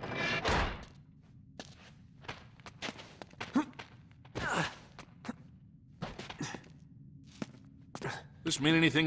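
Footsteps run and scuff across a stone floor.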